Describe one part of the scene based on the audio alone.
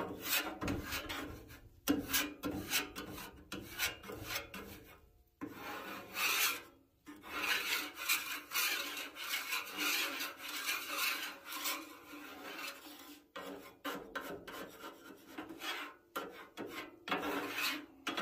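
A metal scraper scrapes across a griddle.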